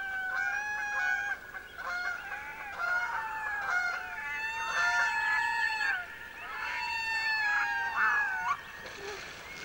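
Loons call with long, wavering wails over water.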